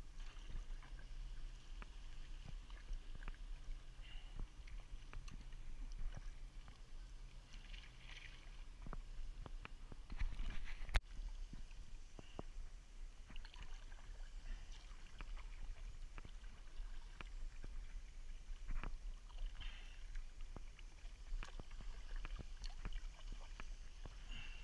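A kayak paddle splashes and dips into water with each stroke.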